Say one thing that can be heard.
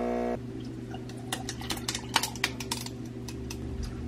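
Milk glugs as it pours over ice in a glass.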